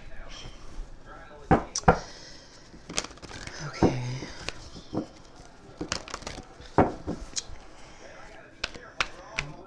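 Playing cards shuffle and slap together.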